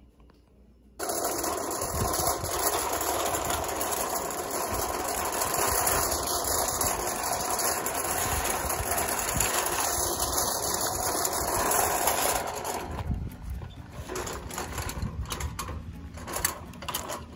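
A toy wagon's wheels rumble over asphalt outdoors.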